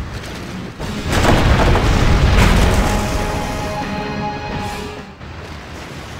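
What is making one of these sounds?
Cannons fire and shells explode in a loud burst of booms.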